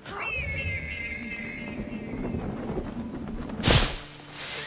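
Air rushes past during a long fall.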